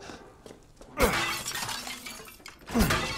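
A knife slashes with a sharp swish.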